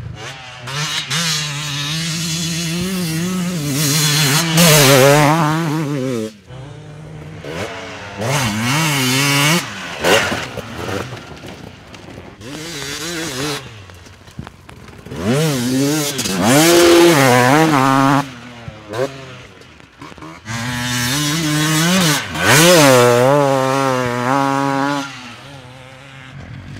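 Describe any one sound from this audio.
Dirt bike engines rev loudly and rise and fall in pitch as they climb and accelerate.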